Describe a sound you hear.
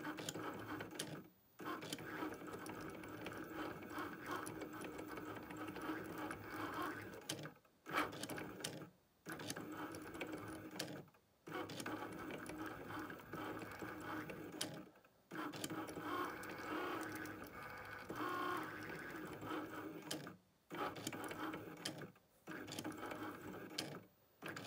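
The stepper motors of an electronic cutting machine whir as its tool carriage moves back and forth, with brief pauses.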